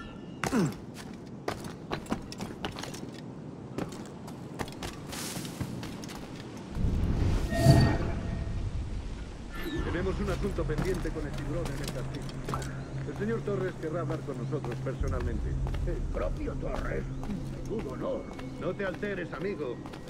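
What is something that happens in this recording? Footsteps patter quickly across roof tiles.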